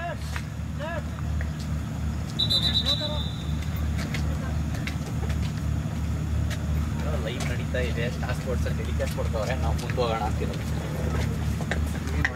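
Young men call out to each other from a distance outdoors.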